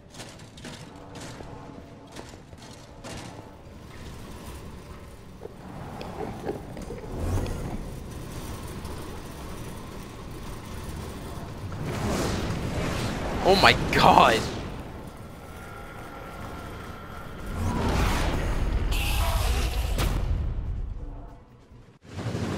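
Minecarts rattle and rumble along rails.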